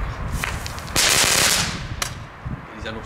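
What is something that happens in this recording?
A firework fizzes and hisses sharply along the ground.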